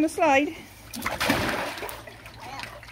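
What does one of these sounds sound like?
Water splashes as a young girl lands in a paddling pool.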